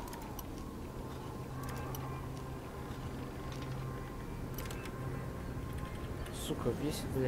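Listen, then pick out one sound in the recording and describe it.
Metal lock picks scrape and click inside a lock.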